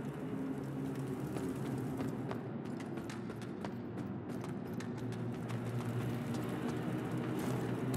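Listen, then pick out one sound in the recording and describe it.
Footsteps crunch on a stone floor.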